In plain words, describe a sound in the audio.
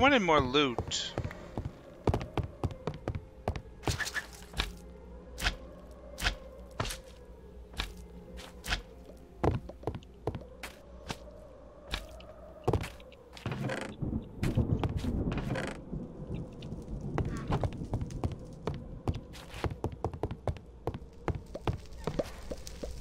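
Short knocks of blocks being placed sound again and again.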